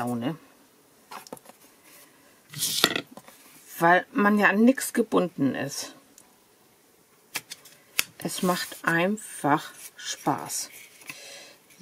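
Cardboard scrapes and slides across a flat surface.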